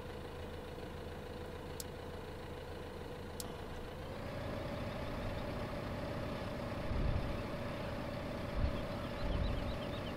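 A tractor engine hums steadily, then revs slightly higher and louder.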